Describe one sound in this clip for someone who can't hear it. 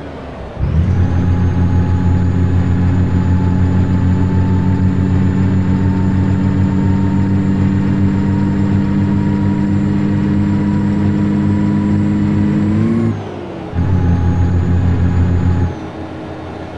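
A truck engine drones steadily at low pitch, cutting out briefly and then returning.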